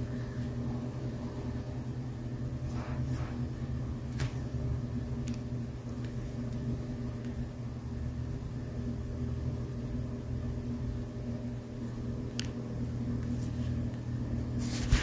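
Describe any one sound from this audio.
A car engine idles nearby with a low, steady hum.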